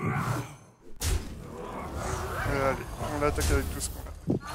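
A magical blast booms and crackles.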